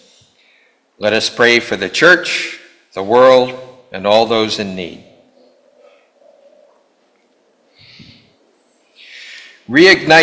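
An elderly man speaks slowly and solemnly through a microphone in a reverberant room.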